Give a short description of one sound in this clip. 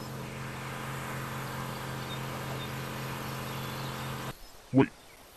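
A vehicle engine hums steadily as it drives.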